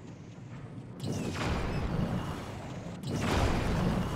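Flames roar in bursts.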